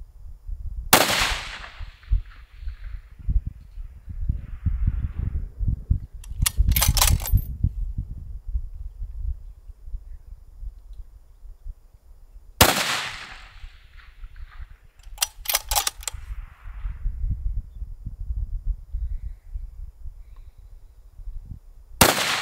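A rifle fires loud sharp shots outdoors, echoing across open ground.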